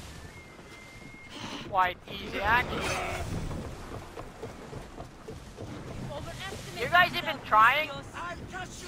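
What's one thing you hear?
Sea waves wash against a wooden ship's hull.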